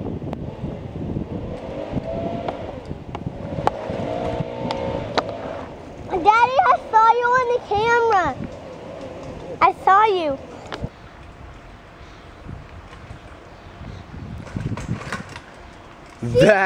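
A bicycle rolls over a dirt track.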